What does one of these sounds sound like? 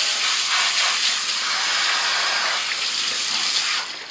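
A hand rubs and scrubs wet hair.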